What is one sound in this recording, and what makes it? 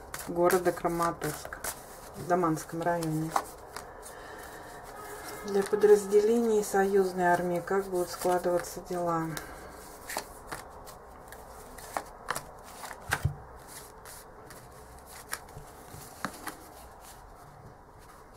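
Cards tap and slide softly on a cloth surface.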